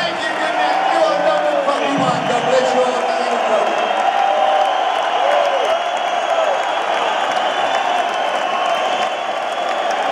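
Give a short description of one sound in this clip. A large crowd cheers and whistles throughout.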